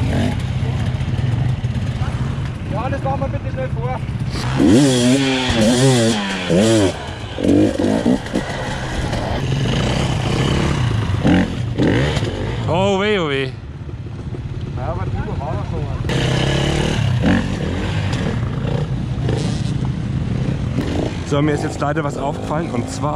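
A dirt bike engine revs loudly close by, rising and falling in pitch.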